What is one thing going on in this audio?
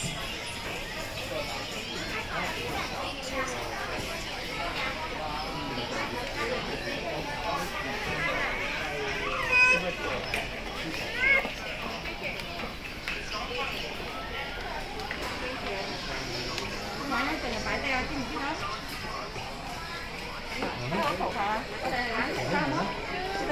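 Adults and children chatter nearby in a busy indoor space.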